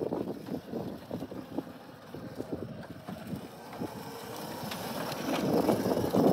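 Small wheels rumble over rough concrete.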